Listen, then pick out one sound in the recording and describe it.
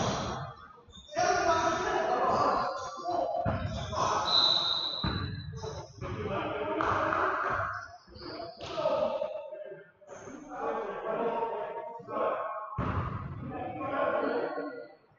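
A man talks and calls out nearby in a large echoing hall.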